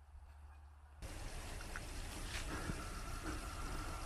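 A camp stove burner hisses steadily.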